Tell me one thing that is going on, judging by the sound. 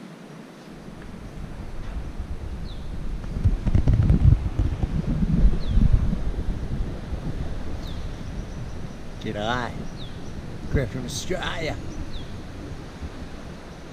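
Wind buffets loudly.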